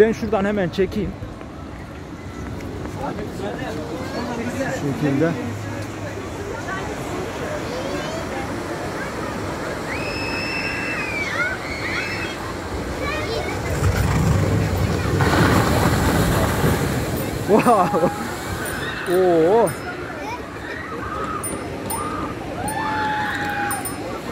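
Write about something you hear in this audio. A crowd of people chatters nearby, outdoors.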